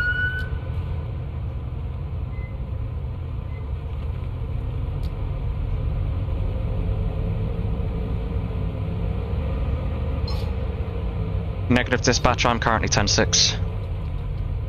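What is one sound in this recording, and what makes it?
A car engine hums as the car drives along a street.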